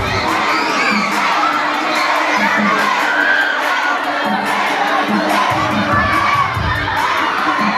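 Loud pop music plays through loudspeakers in an echoing hall.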